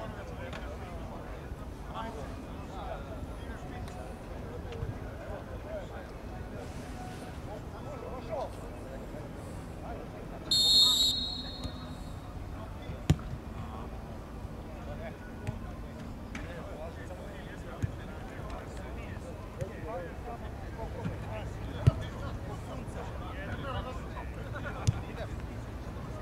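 Players call out to each other across an open field.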